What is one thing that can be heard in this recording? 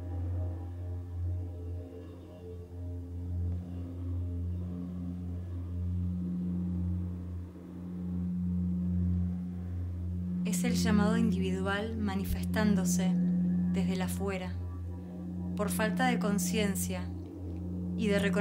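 Singing bowls ring with a steady, humming drone.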